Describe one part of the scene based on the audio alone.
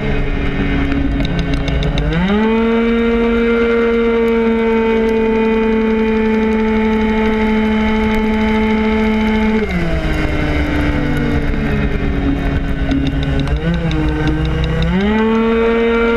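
A motorcycle engine roars close by, revving up on straights and dropping back when slowing for bends.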